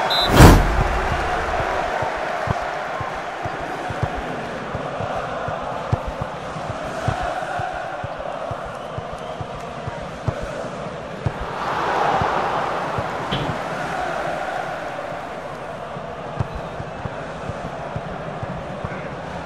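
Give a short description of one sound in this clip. A ball is kicked with short dull thumps.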